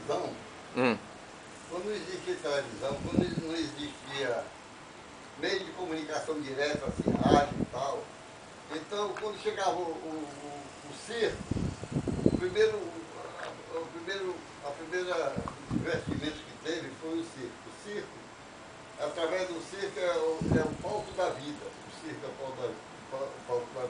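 An elderly man talks calmly and close by.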